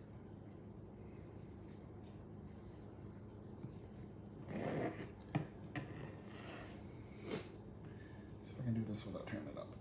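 A knife slices through soft cake.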